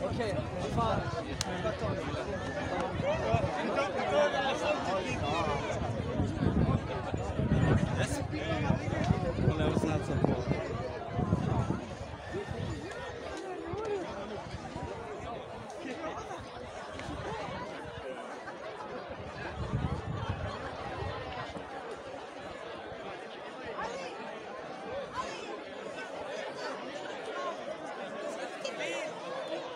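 A crowd of men and women chatters loudly outdoors.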